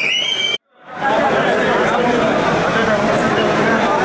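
A crowd of men and women chatters and calls out.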